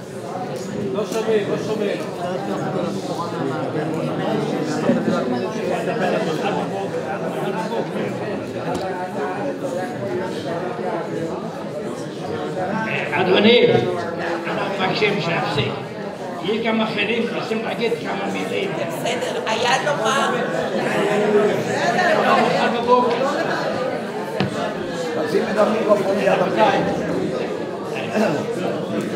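A crowd of people talks and murmurs in the background.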